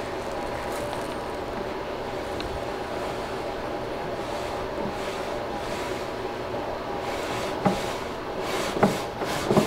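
A wooden drawer slides in and out with a soft rubbing sound.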